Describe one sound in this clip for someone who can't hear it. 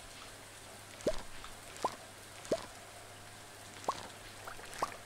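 Short rising pops of a game sound play several times.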